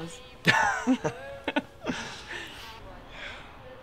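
A young man laughs softly up close.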